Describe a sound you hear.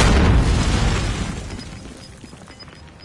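A loud blast rumbles and slowly fades.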